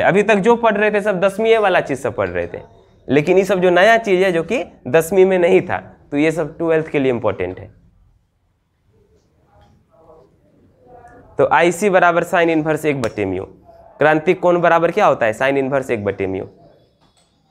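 A man lectures calmly and clearly, close to a microphone.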